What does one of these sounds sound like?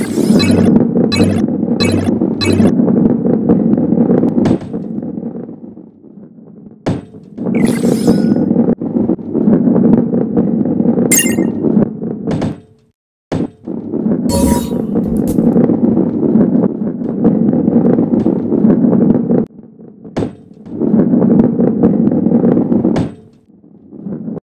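A ball rolls and rumbles along a track.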